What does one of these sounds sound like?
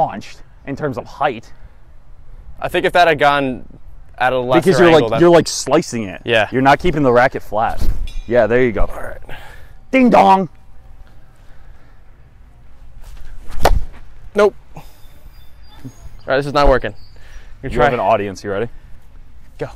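A young man talks with animation outdoors.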